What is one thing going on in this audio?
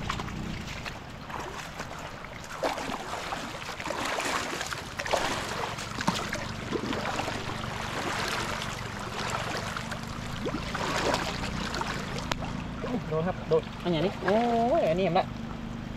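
Muddy floodwater rushes past steadily.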